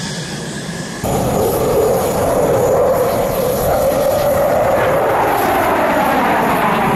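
Jet engines roar loudly overhead and slowly shift in pitch.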